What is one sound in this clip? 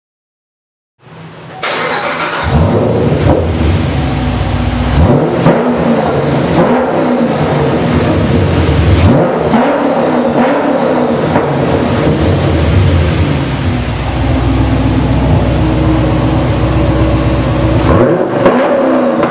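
A car engine roars loudly close by, revving up and down through a rumbling exhaust.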